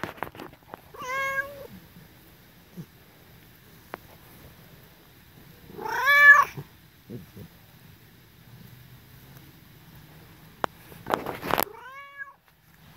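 A cat meows loudly up close, several times.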